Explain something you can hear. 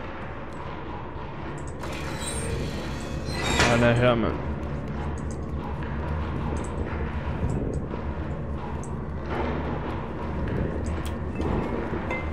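Small footsteps patter on a hard floor.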